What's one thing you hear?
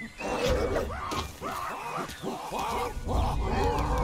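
Apes grunt and shriek as they fight an animal.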